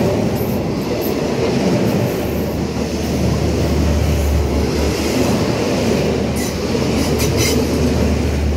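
A passenger train rumbles past close by, its wheels clattering on the rails.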